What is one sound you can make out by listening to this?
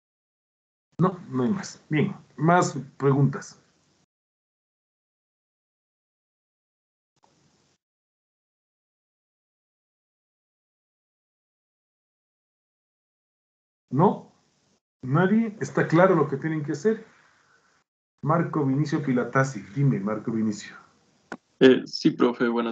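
A man speaks calmly over an online call, pausing now and then.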